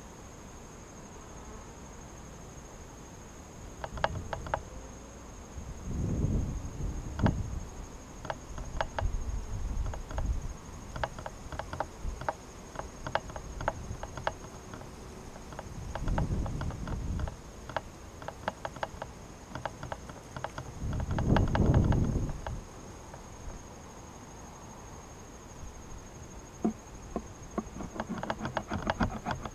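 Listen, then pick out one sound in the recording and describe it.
Bees buzz around an open hive.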